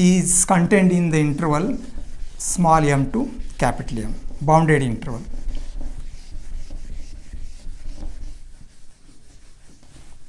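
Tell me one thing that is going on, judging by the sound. A sponge rubs across a whiteboard.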